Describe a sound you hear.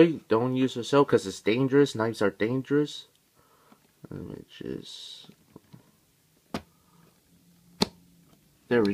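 Scissors snip through cardboard.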